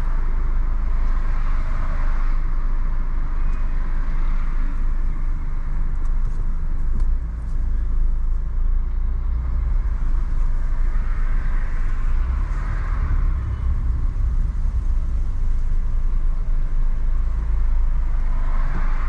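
City traffic rumbles all around.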